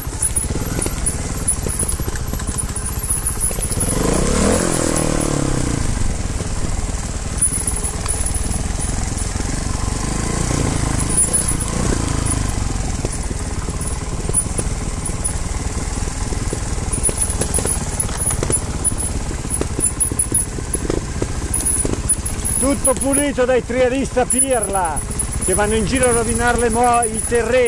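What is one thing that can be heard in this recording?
Dirt bike tyres crunch over rocks and dry leaves.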